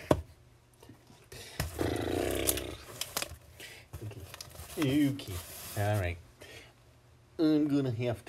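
A cardboard box scrapes and shifts across a wooden surface.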